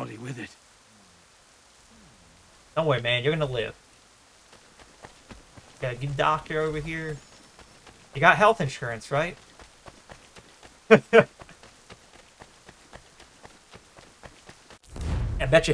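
A young man talks with animation close to a microphone, in short bursts.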